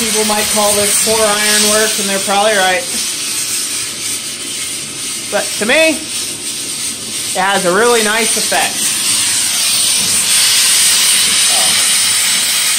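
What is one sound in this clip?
A gas torch roars with a steady hiss.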